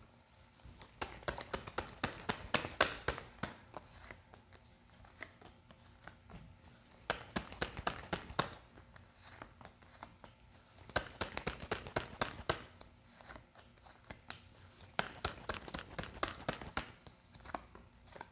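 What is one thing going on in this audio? Playing cards are shuffled and tapped down onto a wooden table.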